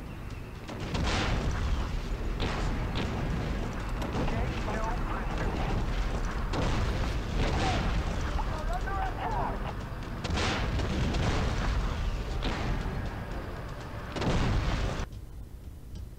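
Tank guns fire in repeated booming blasts.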